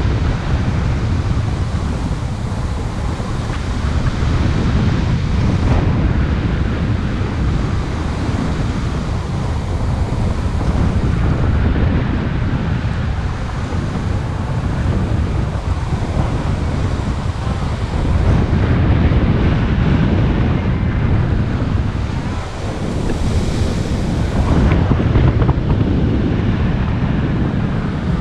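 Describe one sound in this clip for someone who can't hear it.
Strong wind rushes and buffets loudly past the microphone throughout.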